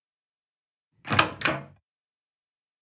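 A door clicks open.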